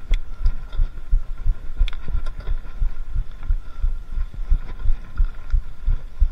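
Bicycle tyres roll and bump over a rough dirt trail.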